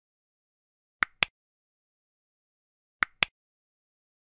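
A mouse button clicks sharply, twice in quick succession and then again.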